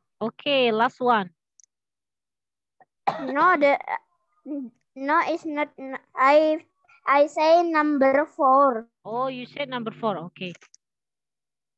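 A young woman speaks clearly and slowly over an online call, as if teaching.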